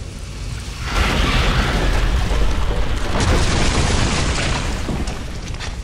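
Rubble crashes and rumbles down.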